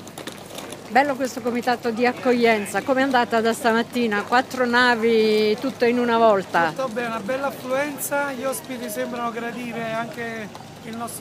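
A man sings loudly and close by.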